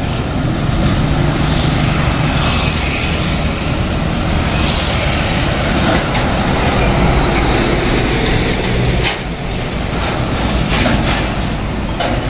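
Motorbikes buzz past on a busy road.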